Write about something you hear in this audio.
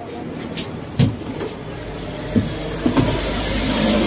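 Wooden knocks sound as a rattan chair frame is moved.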